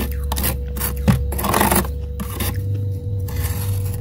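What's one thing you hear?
A metal spoon scrapes and crunches through frost.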